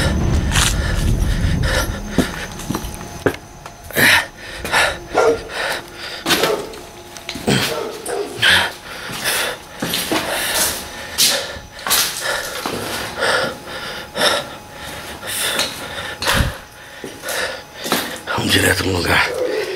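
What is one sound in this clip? Footsteps crunch over debris on a gritty floor.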